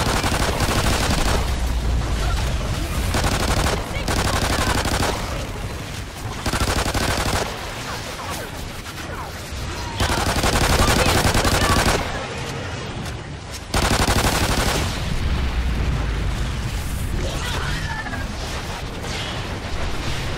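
Pistol shots fire rapidly.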